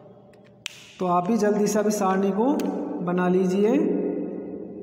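A young man speaks aloud in an echoing room.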